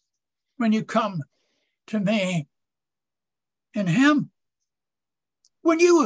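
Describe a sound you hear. An elderly man talks with animation over an online call.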